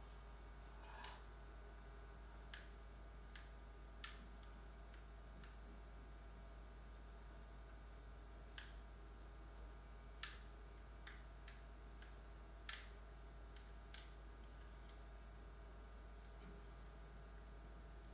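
A television hums low and steadily.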